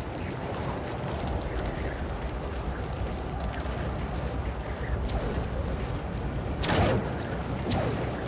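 Wind rushes steadily past during a fast swing through the air.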